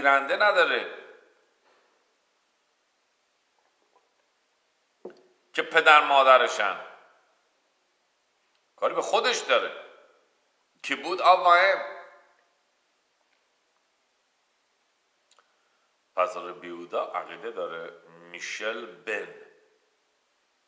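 A middle-aged man speaks calmly, close to a microphone, in short bursts with pauses.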